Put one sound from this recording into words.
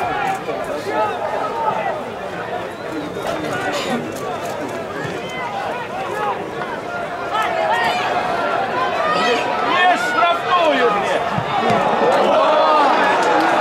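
Young men shout to each other across an open football pitch.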